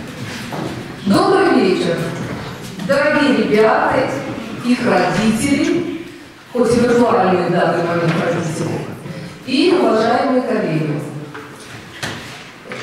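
A middle-aged woman speaks calmly into a microphone in an echoing hall.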